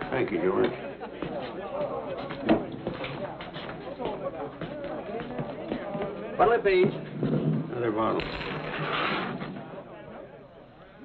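A crowd of men chatters loudly in a busy room.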